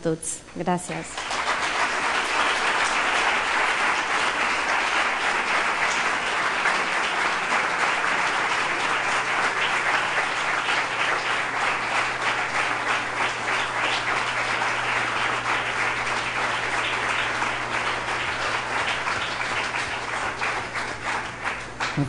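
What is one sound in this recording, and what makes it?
An audience applauds steadily in a large room.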